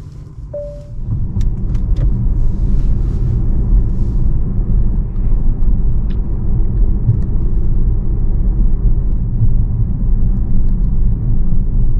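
A car engine and tyres rumble steadily from inside the cabin.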